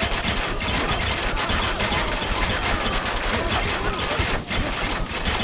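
Many soldiers march in step across open ground.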